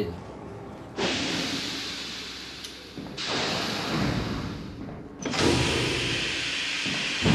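Steam hisses loudly from a pipe in bursts.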